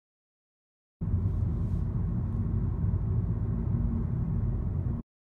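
A car drives along a road with a steady low rumble from inside.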